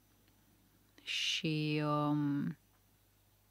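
A woman speaks calmly and close into a microphone.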